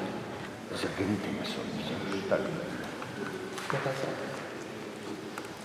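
A man speaks calmly nearby in a large echoing hall.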